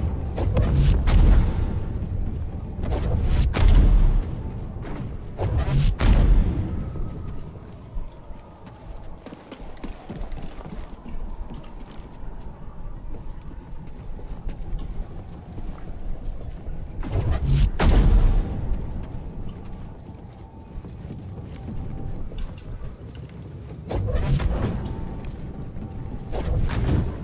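A heavy stone ball rumbles and thuds as it rolls.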